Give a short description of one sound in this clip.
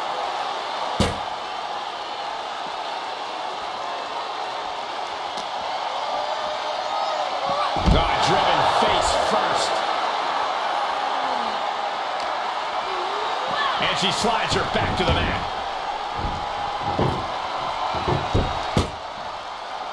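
Heavy bodies slam onto a hard floor with loud thuds.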